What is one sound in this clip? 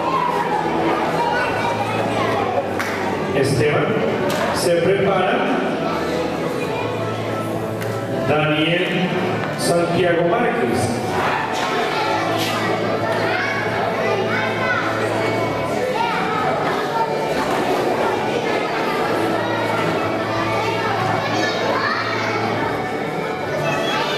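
An older man speaks through a microphone over loudspeakers in an echoing hall.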